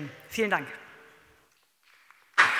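A woman speaks briefly through a microphone.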